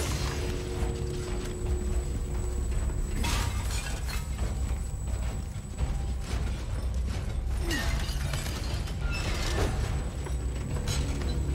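Footsteps scuff slowly on a stone floor.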